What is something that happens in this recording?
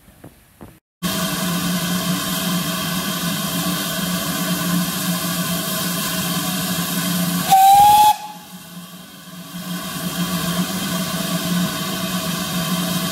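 A steam locomotive chuffs and rumbles loudly as it pulls away.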